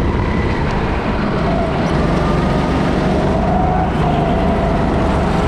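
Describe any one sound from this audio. A small kart engine whines loudly close by as the kart races around the track.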